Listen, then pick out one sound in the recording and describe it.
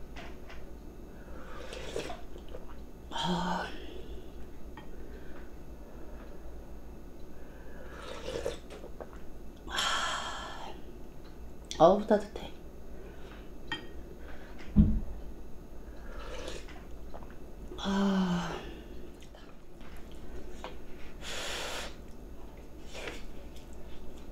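A young woman chews and smacks her lips close by.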